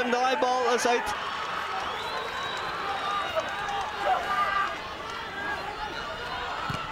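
A crowd of spectators murmurs and calls out in the open air.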